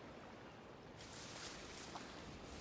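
Leaves rustle as someone pushes through dense bushes.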